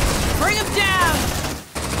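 Electric bolts crackle and zap in a burst.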